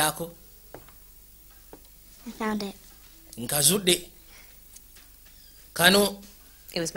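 A woman speaks softly and calmly nearby, in short phrases.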